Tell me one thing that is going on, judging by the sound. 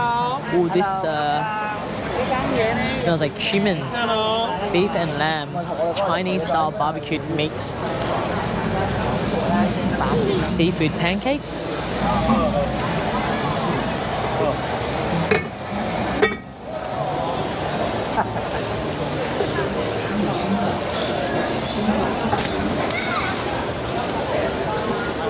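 A crowd chatters on a busy street outdoors.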